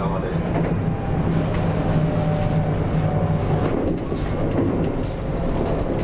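Train wheels clatter over rail joints and points.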